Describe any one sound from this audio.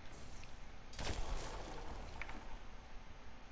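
A magical whoosh swells and fades as a portal opens.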